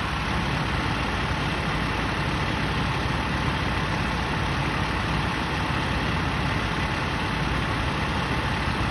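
A fire truck engine idles with a steady low rumble close by.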